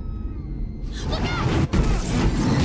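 A girl shouts a warning in alarm.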